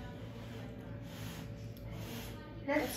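A boy slurps noodles.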